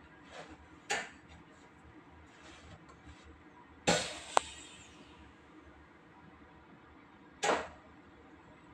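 A train's wheels knock now and then over rail joints.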